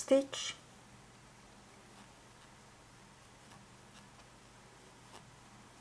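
A crochet hook softly clicks and scrapes against yarn.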